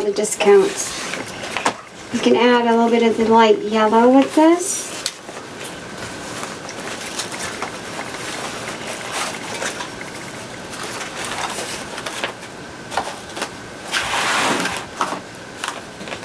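A ribbon rustles and crinkles as it is handled.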